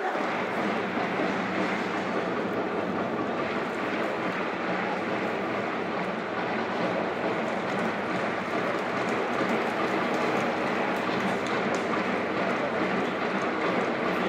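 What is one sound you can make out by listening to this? A large stadium crowd roars and chants steadily in the distance, outdoors.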